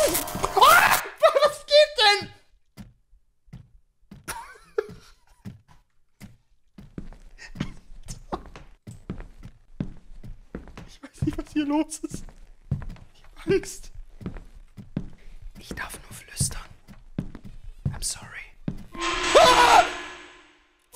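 A young man screams loudly into a close microphone.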